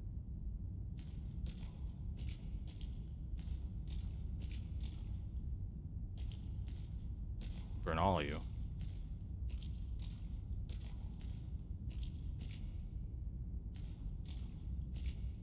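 Footsteps splash slowly through shallow water.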